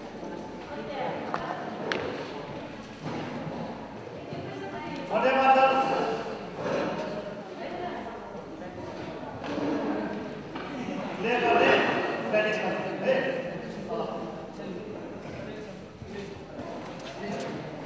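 Gymnastic rings creak and rattle as a man swings on them.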